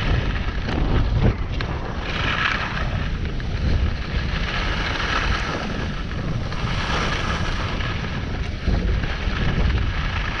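Skis scrape and hiss steadily over packed snow.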